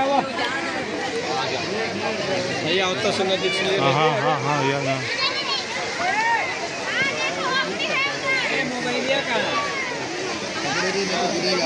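A crowd of men, women and children chatters all around, close by.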